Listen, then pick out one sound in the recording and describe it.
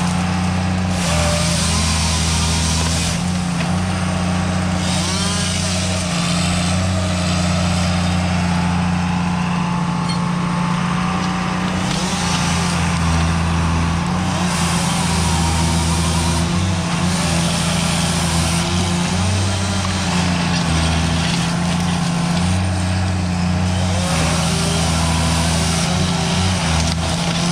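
A forestry machine's diesel engine rumbles steadily close by and revs up and down.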